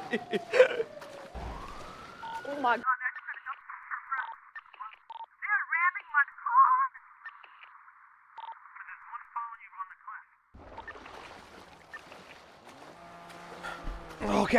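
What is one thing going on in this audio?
Water splashes and laps as a swimmer moves.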